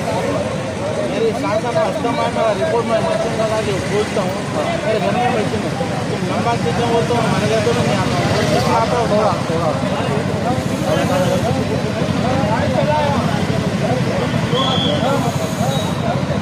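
A crowd of people murmurs in the background outdoors.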